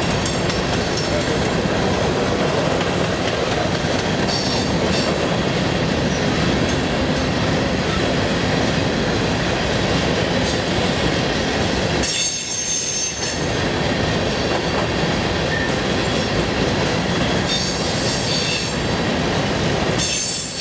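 Loaded freight cars rumble and clatter steadily along the rails.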